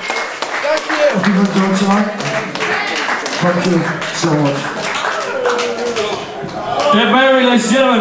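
A young man sings and screams into a microphone.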